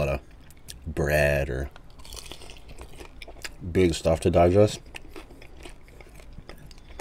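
A man chews chicken wings with wet, close-up smacking sounds.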